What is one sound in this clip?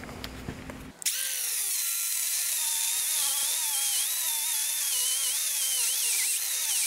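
An angle grinder whines steadily as it grinds metal.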